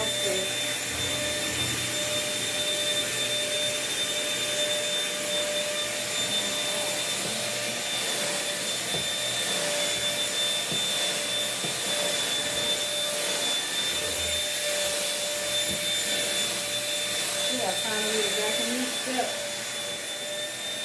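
A vacuum cleaner runs with a steady whining hum.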